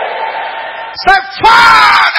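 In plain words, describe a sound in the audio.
A man speaks loudly into a microphone.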